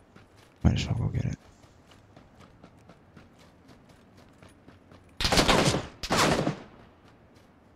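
A young man speaks loudly into a close microphone in short bursts.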